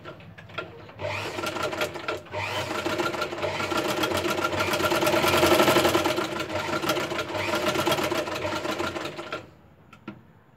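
A sewing machine whirs steadily as it stitches.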